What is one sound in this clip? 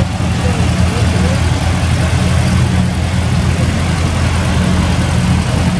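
A small tractor engine runs with a steady, low chugging rumble.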